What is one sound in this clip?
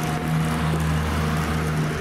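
A car drives past with a low engine hum.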